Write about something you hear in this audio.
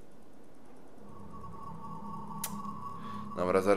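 A sword gives off a steady humming tone.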